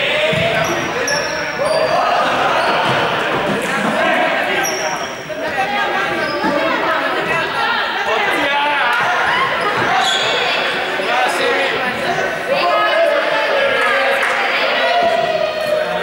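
Balls bounce on a hard floor.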